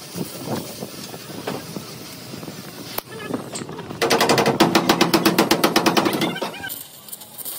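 An electric welder buzzes and crackles in short bursts.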